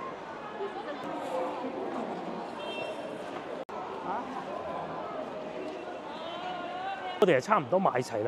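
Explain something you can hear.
A crowd of shoppers murmurs and chatters in the background.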